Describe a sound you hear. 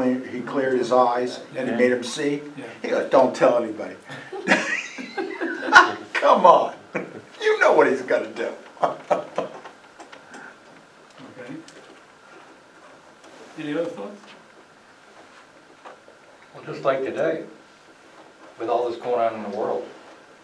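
An older man talks calmly in a room with a slight echo, with pauses.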